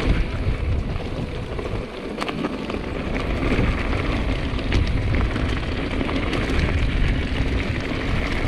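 Bike tyres crunch and rattle over loose gravel.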